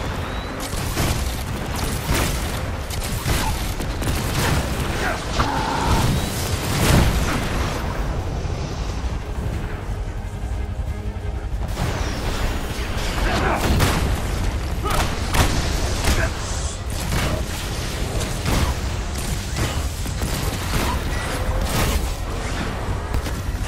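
Energy blasts fire in rapid bursts.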